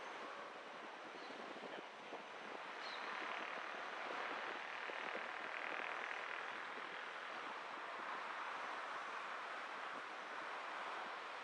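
A car drives along a city street with a steady hum of tyres on the road.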